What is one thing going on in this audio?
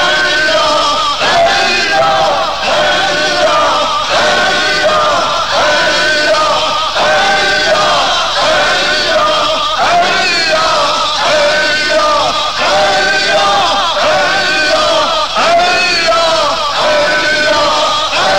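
An elderly man chants melodically into a microphone.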